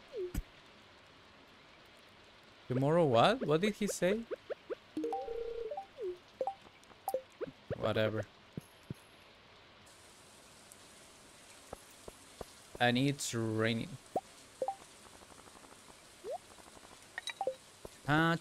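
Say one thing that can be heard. Short game chimes and clicks play.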